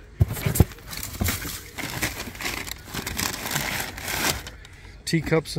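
Paper rustles and crinkles close by as a hand rummages in a box.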